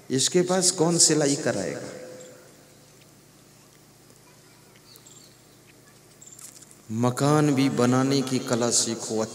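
A middle-aged man speaks with animation into a microphone, with a slight echo.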